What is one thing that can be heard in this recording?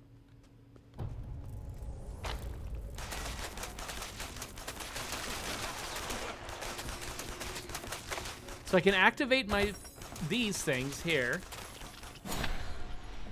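Spells and blasts whoosh and crackle in a game.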